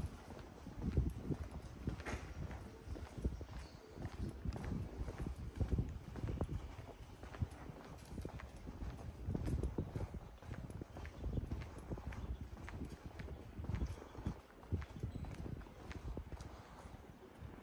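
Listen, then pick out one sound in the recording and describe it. Low wind rumbles outdoors.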